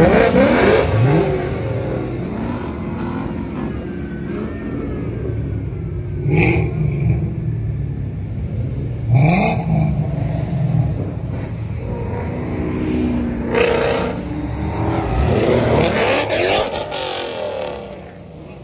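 A sports car engine rumbles deeply at low speed.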